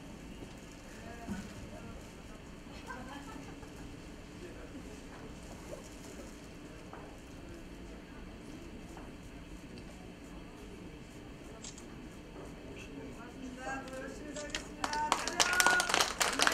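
Women and men talk quietly among themselves.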